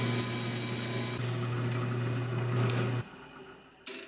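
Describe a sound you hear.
A drill press motor hums steadily.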